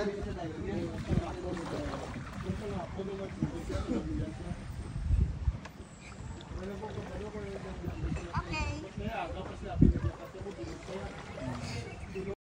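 A woman wades through shallow water.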